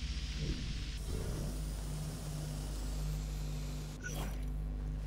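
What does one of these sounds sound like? A small drone buzzes steadily.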